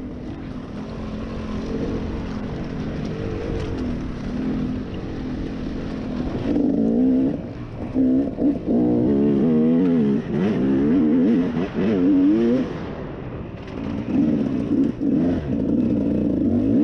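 Tyres crunch over dirt and dry leaves.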